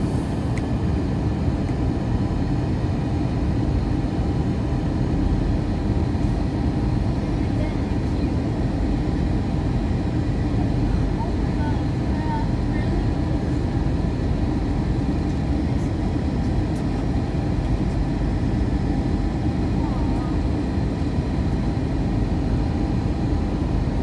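Jet engines roar steadily, heard from inside an aircraft cabin.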